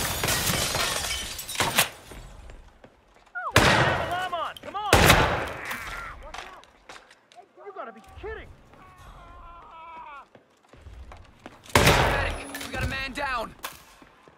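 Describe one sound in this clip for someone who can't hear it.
Pistol shots fire loudly and echo through a large hall.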